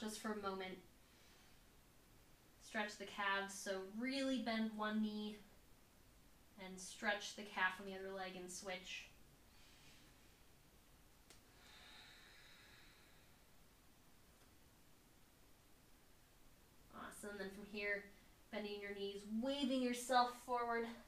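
A young woman speaks calmly and clearly in short phrases, with pauses between them.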